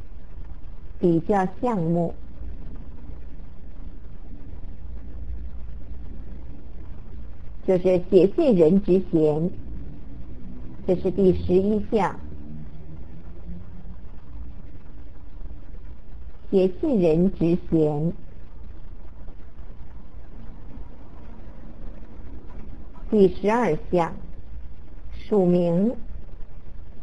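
A woman speaks calmly in short phrases through a microphone, with pauses between.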